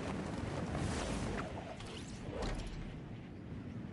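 A glider snaps open with a whoosh.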